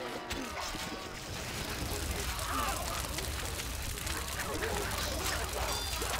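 Soldiers' weapons clash in a battle.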